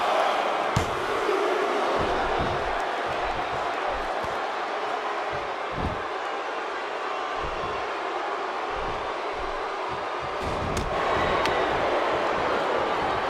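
A large crowd cheers and roars steadily, loud throughout and swelling near the end.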